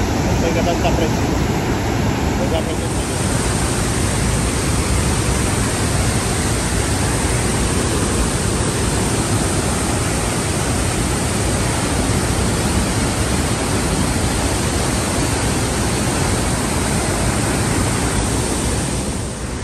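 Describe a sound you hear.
Strong wind buffets the microphone.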